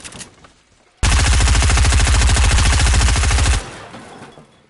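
A gun fires rapidly.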